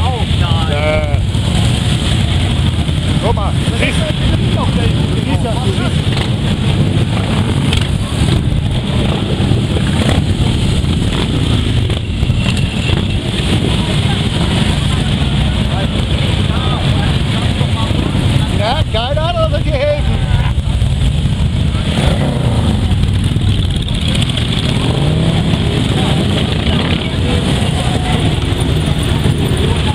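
Many motorcycle engines rumble loudly as a long column of bikes rides past close by.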